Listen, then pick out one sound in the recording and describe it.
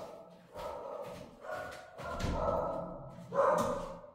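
Footsteps walk away across a hard floor.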